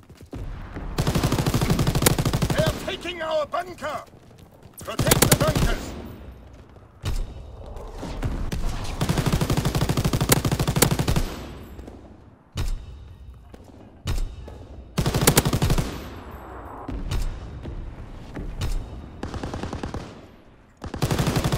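A machine gun fires rapid bursts close by.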